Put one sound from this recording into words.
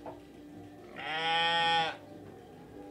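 A newborn lamb bleats.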